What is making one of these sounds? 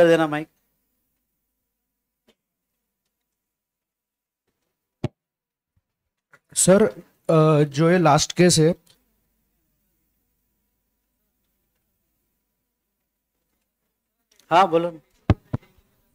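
A man speaks calmly into a close microphone, in short bursts with long pauses.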